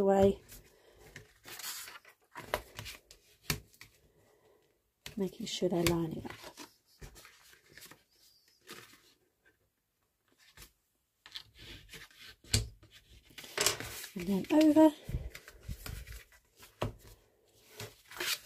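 Sheets of paper slide and rustle on a table.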